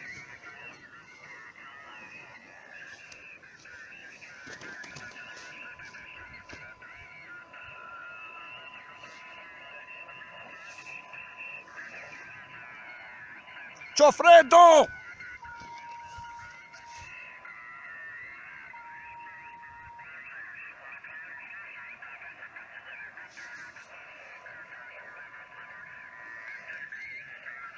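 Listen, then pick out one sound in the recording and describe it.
Voices crackle faintly through a small radio speaker.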